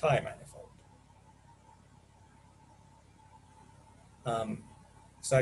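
A man speaks calmly through an online call, in short bursts with pauses.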